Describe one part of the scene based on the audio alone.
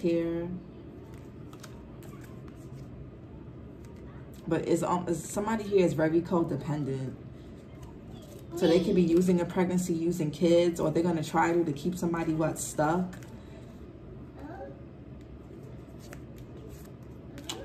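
Playing cards shuffle and flick softly between hands.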